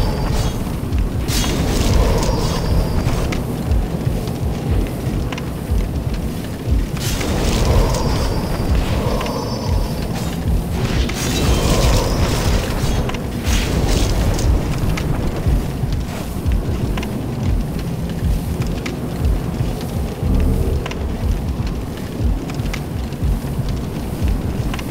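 Heavy armoured footsteps clank on stone.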